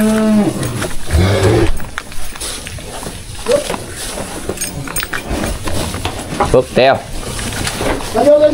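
Cows moo loudly nearby, several times.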